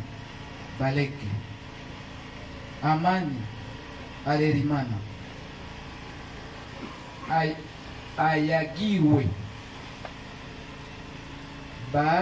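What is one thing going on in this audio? An older man speaks slowly and calmly into a nearby microphone, with long pauses.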